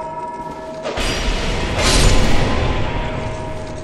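A sword slashes and strikes a foe with a heavy thud.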